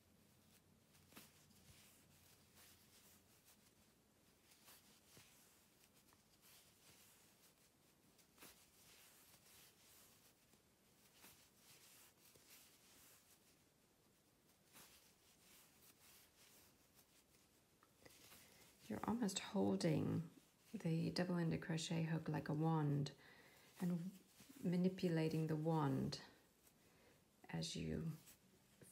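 A wooden Tunisian crochet hook works through wool yarn with faint rustles.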